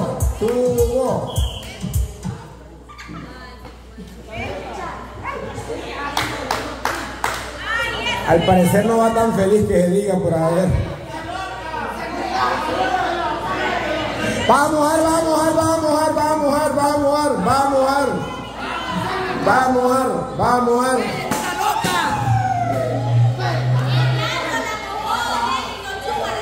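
A crowd of men and women laughs and cheers.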